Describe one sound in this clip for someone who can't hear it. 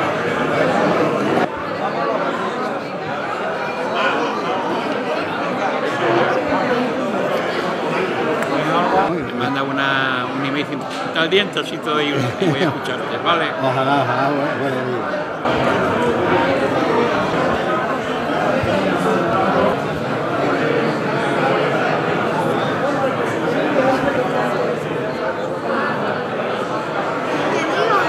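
Several people talk at once in a room that echoes slightly.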